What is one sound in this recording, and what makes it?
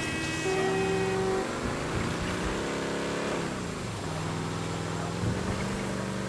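A truck engine rumbles steadily, its pitch rising and falling.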